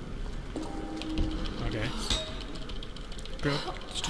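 A wooden door creaks and scrapes as it is pried open.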